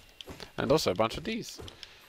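A sword slashes with a sharp swish.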